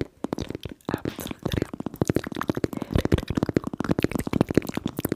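A young woman whispers close into a microphone.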